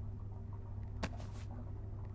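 A pistol is picked up with a sharp metallic click.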